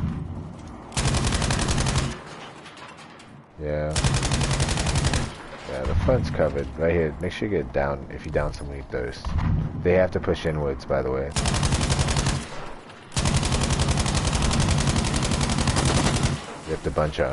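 A machine gun fires in long rapid bursts.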